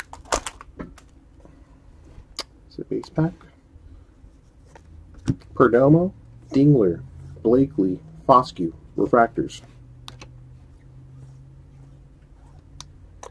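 Trading cards slide and flick against each other in a hand.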